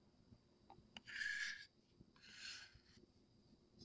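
Paint is scraped off a stirring stick against a cup's rim.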